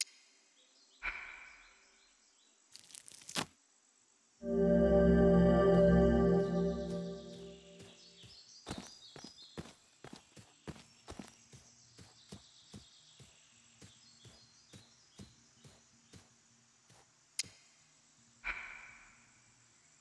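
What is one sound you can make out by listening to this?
A plant rustles as it is plucked by hand.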